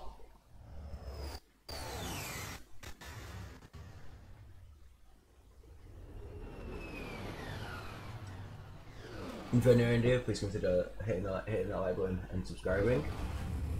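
A spaceship engine roars and whooshes past.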